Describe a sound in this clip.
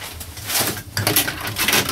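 A plastic latch clicks as a hand pulls open an overhead compartment.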